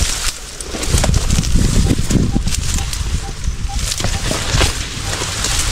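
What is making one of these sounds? Wind blows outdoors and rustles leaves.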